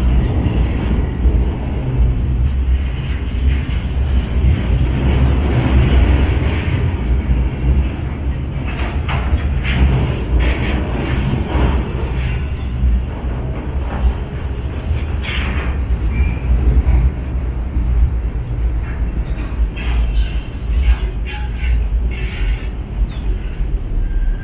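A freight train rumbles past close by, echoing under a bridge.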